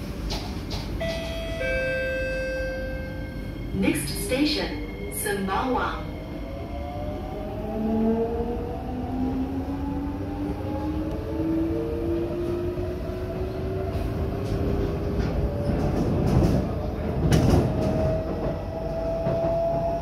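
A train's electric motor whines, rising steadily in pitch as it speeds up.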